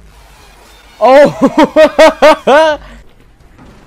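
A young woman laughs in loud bursts through a microphone.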